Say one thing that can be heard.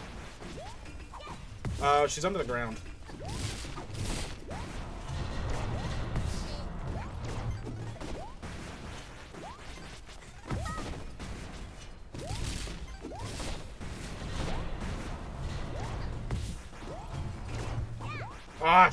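Booming blasts and laser effects sound from a video game.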